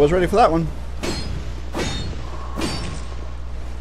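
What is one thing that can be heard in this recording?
Metal blades clash and strike in a fight.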